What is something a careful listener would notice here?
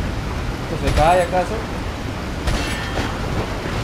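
Gunshots bang sharply several times.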